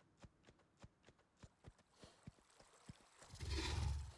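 Hooves clop slowly and evenly on the ground.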